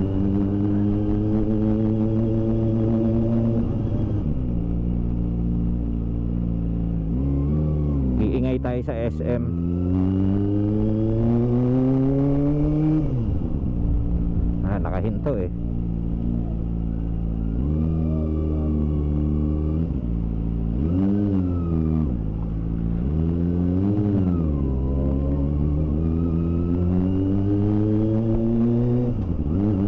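A motorcycle engine hums close by, its pitch rising and falling as the rider speeds up and slows down.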